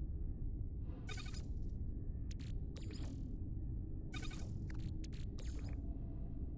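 Short electronic menu chimes and clicks sound in bursts.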